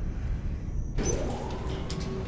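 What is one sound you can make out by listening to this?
An elevator rumbles low as it moves.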